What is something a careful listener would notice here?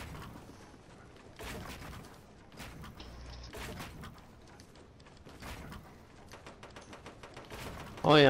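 Wooden building pieces snap into place with sharp clacks.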